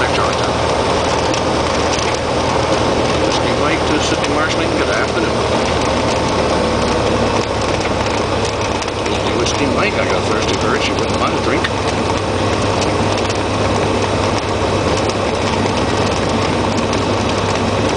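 Wheels rumble over a runway.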